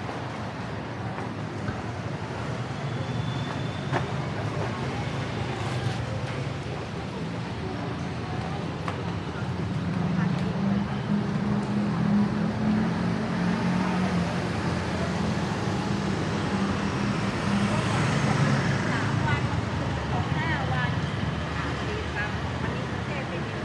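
Busy city street traffic rumbles steadily outdoors.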